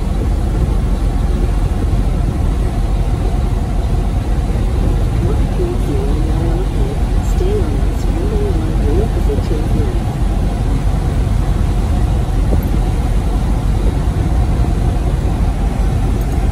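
Tyres roll on a smooth road with a steady low rumble.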